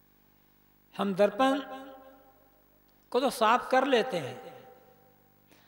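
A man chants in a loud, echoing voice.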